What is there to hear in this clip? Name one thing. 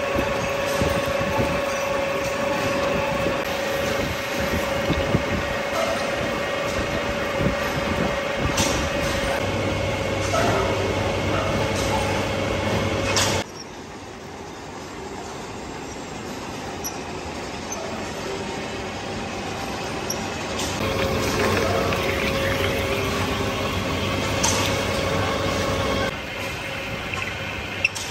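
Metal swarf crackles and scrapes as a drill bit cuts steel.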